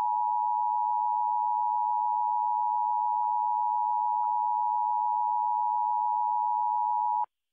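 A steady, piercing alert tone sounds without a break, then cuts off.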